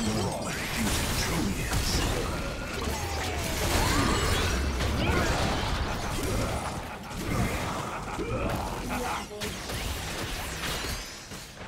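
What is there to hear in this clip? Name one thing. Magic spells whoosh and crackle in a video game battle.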